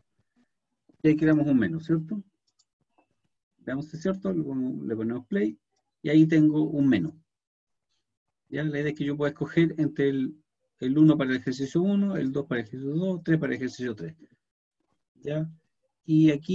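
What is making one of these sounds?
A man speaks calmly through a microphone, as on an online call.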